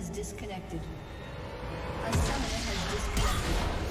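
Game spell effects burst and crackle during a fight.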